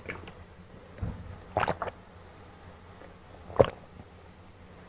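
A plastic bottle crinkles as it is squeezed.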